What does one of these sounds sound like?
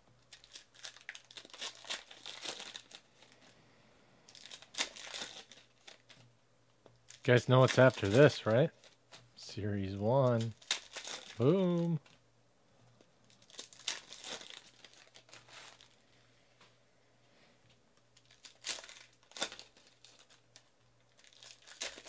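Foil card wrappers crinkle and tear as hands open packs.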